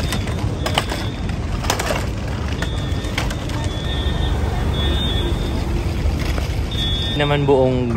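Cart wheels rattle over pavement outdoors.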